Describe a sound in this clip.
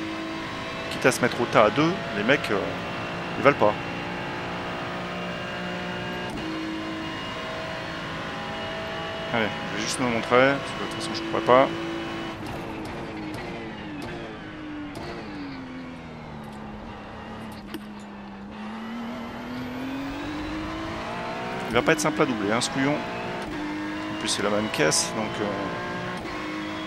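A racing car engine revs sharply up and down during quick gear changes.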